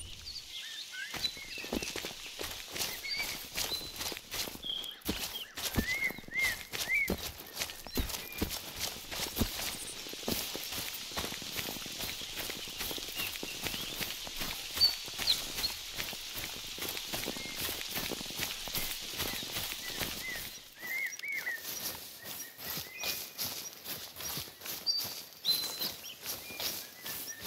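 Footsteps rustle through tall grass and undergrowth.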